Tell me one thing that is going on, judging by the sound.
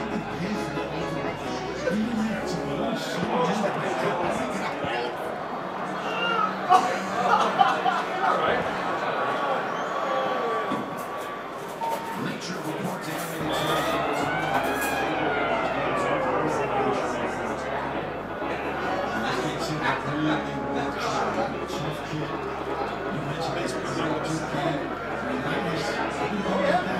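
A crowd of people chatters loudly in a busy room.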